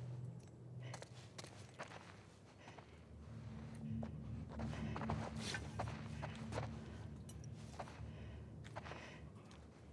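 Footsteps tread slowly across a floor.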